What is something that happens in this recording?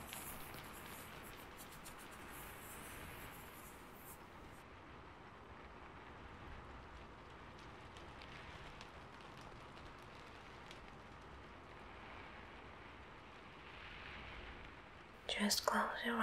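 Hands brush and sweep softly close to a microphone.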